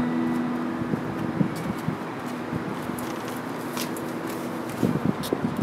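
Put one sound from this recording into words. An electric guitar plays notes.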